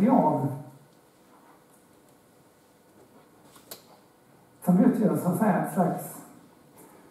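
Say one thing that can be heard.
A middle-aged man speaks calmly through a head microphone.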